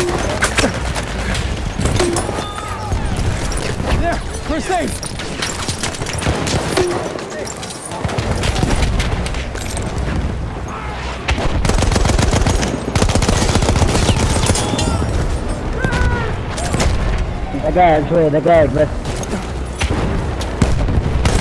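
Guns fire in rapid bursts, with loud cracks and booms.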